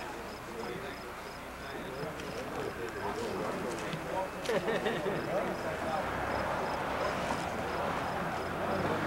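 A group of adult men and women chat casually outdoors.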